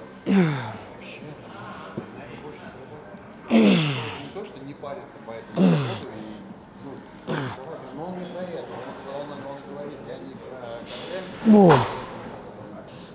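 A man grunts loudly with effort, again and again.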